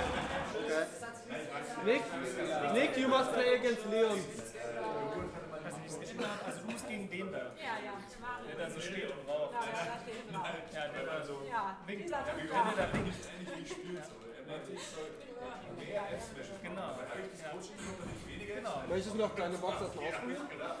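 Young men talk and chat casually nearby.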